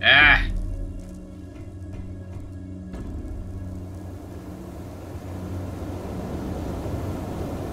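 Heavy boots thud on a metal floor.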